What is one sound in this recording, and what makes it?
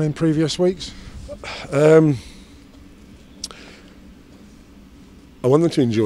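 A middle-aged man speaks calmly into a close microphone.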